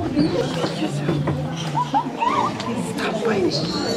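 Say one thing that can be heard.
A little girl squeals and chatters up close.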